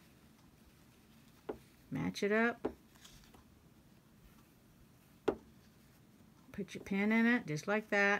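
Fabric rustles softly as hands fold it.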